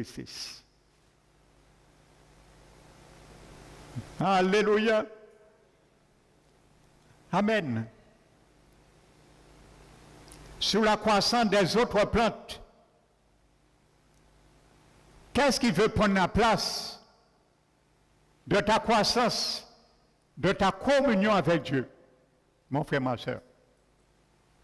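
A man preaches with animation through a microphone, in bursts separated by pauses, in an echoing hall.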